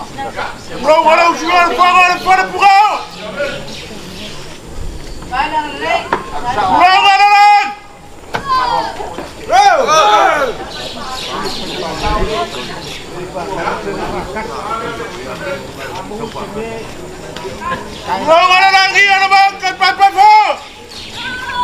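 A man calls out in long, loud, drawn-out cries outdoors.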